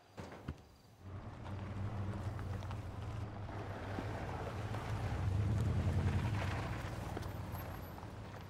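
A car engine rumbles as a vehicle drives up close.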